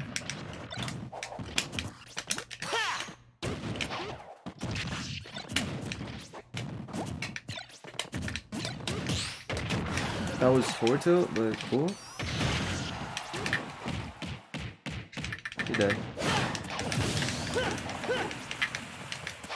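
Punches, blasts and whooshes of a fighting game crackle in quick bursts.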